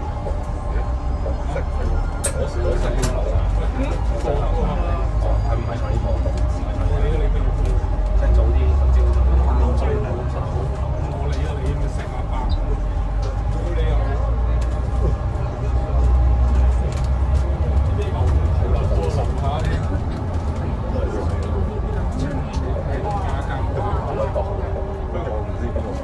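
The bus interior rattles and clicks as it drives.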